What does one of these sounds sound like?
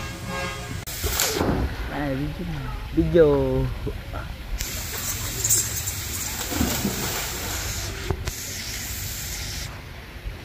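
Water splashes loudly as someone slides into a pool.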